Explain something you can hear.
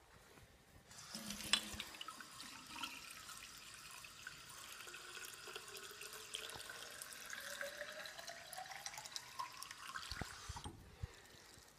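Water runs from a tap into a glass jar, rising in pitch as the jar fills.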